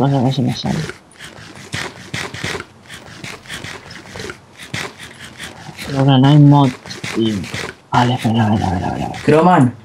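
Wooden blocks are tapped and broken with quick knocks.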